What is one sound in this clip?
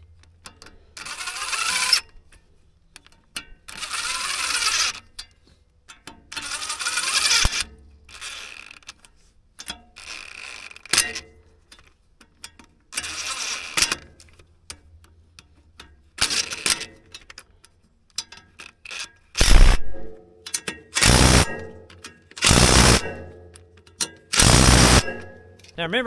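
An impact driver whirs and hammers in short bursts.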